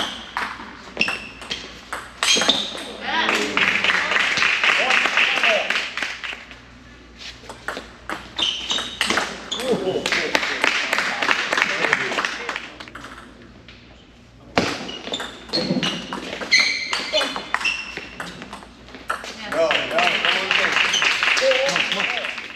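A table tennis ball clicks back and forth off paddles and the table in an indoor hall.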